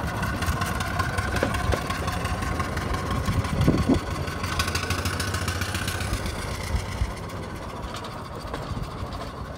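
A small steam engine chuffs rhythmically as it drives away.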